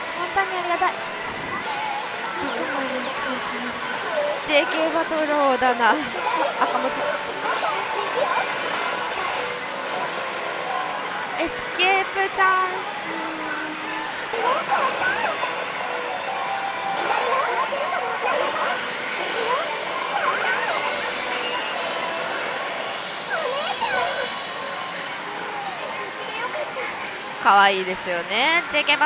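A slot machine plays bright jingles and sound effects.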